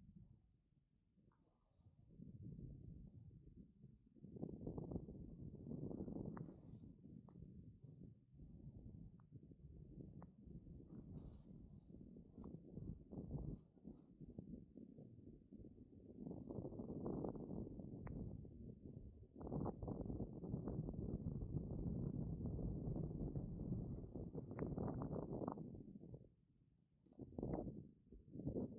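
A snowboard hisses and scrapes over snow.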